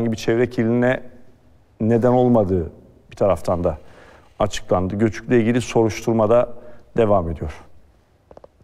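A man speaks calmly and clearly into a microphone, reading out.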